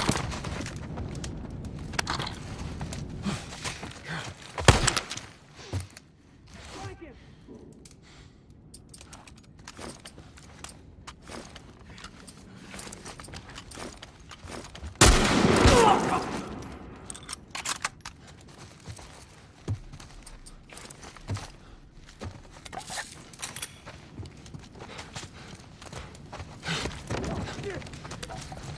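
Footsteps crunch over broken glass and debris.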